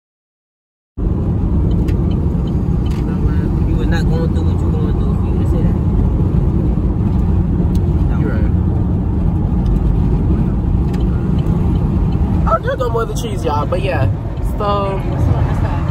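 A car engine hums steadily with road noise.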